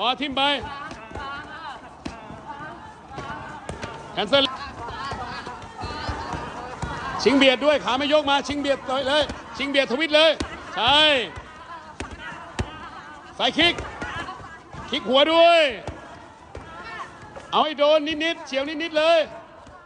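Kicks smack loudly against padded targets.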